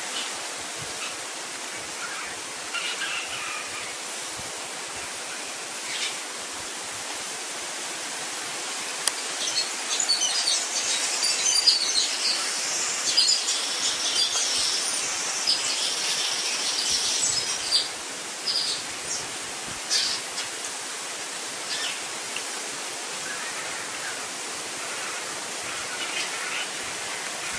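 A woodpecker taps on a tree trunk.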